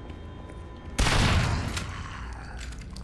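A gunshot blasts loudly and echoes.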